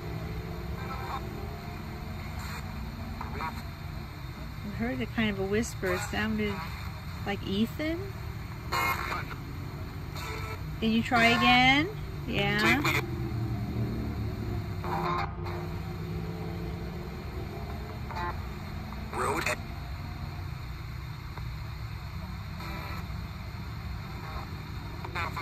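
A small radio hisses with static as it is tuned between stations.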